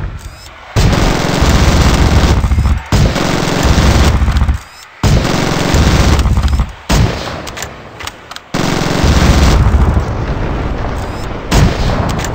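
A rapid cannon fires in long, loud bursts.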